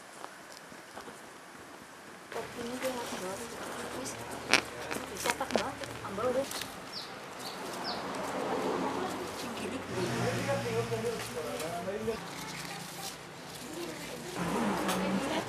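Dry palm strips rustle and crackle as hands weave them.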